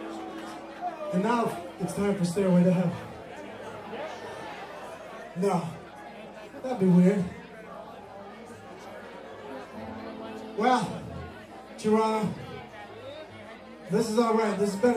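A man sings into a microphone in bursts, heard over a loudspeaker.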